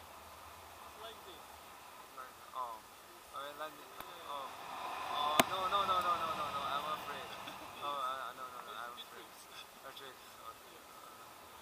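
A young man talks with excitement close by.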